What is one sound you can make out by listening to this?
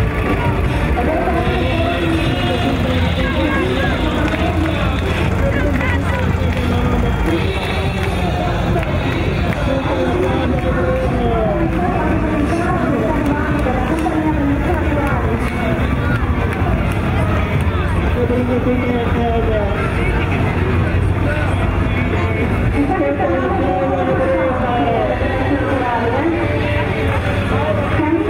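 Loud music plays from a parade float's loudspeakers.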